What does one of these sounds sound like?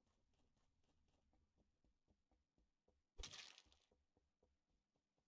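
Quick footsteps patter steadily.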